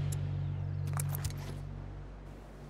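Short clicks tick as a menu is browsed.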